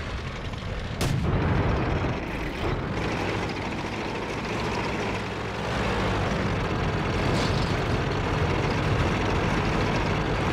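A tank engine rumbles low and steadily.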